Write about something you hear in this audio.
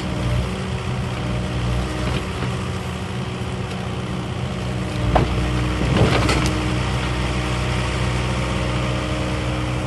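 A diesel engine hums steadily.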